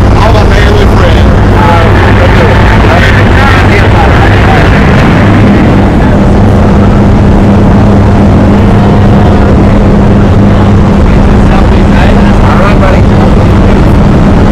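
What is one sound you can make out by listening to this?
A man talks loudly over the engine noise, close by.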